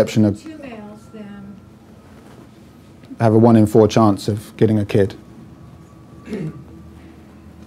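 A middle-aged man speaks calmly into a microphone in a room with a slight echo.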